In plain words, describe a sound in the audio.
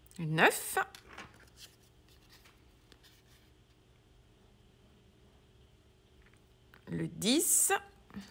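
A stiff paper card rustles softly as it is picked up and handled.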